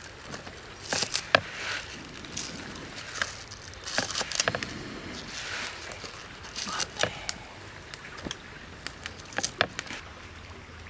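A cleaver chops through green onions on a wooden board with sharp knocks.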